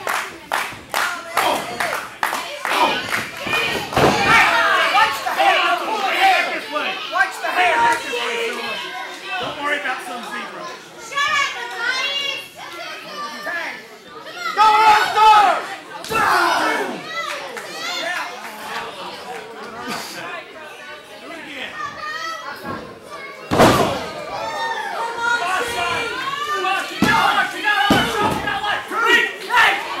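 A crowd in a large hall cheers and shouts throughout.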